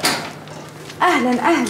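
A woman speaks warmly close by.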